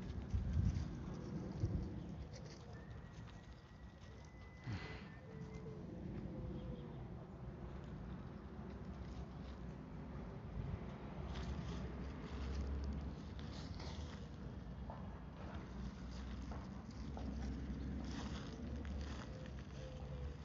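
Dry leaves rustle as a small dog walks through them.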